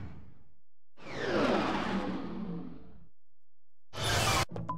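A spaceship roars past in bursts of falling, whooshing tones.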